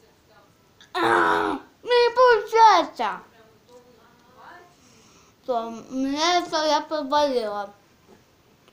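A young girl sings loudly and close by in short bursts.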